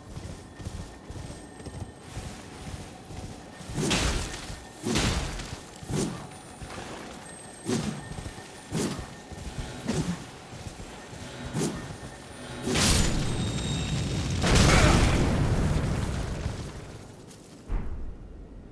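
Footsteps rustle through tall grass at a steady run.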